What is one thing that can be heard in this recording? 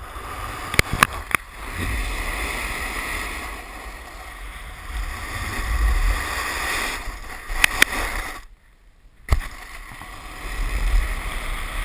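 Wind rushes and buffets loudly past, outdoors.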